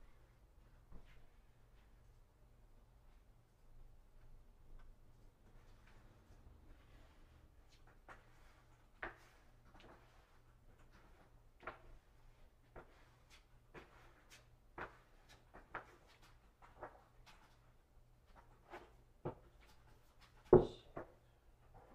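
Paper rustles and taps softly.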